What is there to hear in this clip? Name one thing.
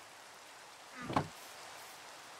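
A wooden chest lid thumps shut.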